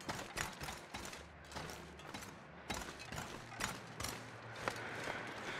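Footsteps crunch over snow at a steady walking pace.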